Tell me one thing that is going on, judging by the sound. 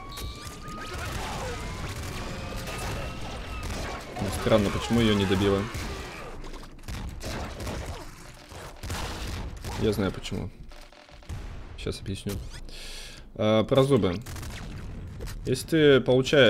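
Rapid electronic gunshots and blasts pop from a game.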